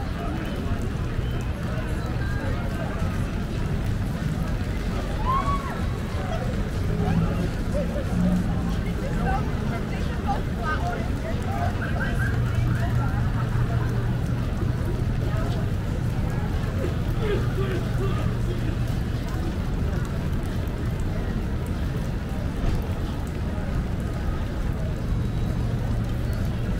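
A crowd of people chatters in the distance.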